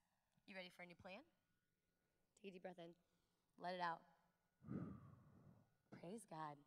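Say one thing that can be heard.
A woman speaks with animation into a microphone, heard through loudspeakers in a large hall.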